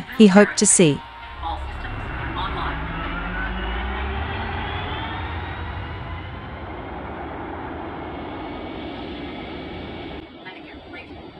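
A spacecraft engine hums and rumbles steadily.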